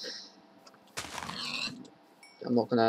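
A pig squeals as it is struck.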